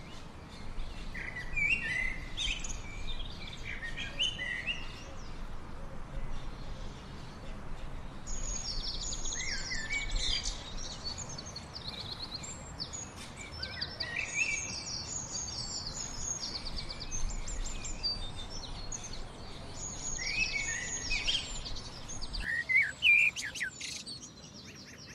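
A small bird chirps and twitters in quick bursts close by.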